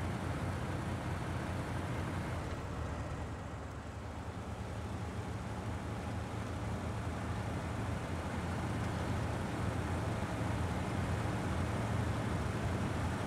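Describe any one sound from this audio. Tyres crunch through snow.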